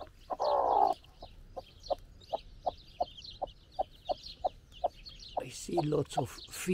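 A hen clucks softly in a steady rhythm.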